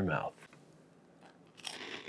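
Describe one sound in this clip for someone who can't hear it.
A man crunches on a cracker.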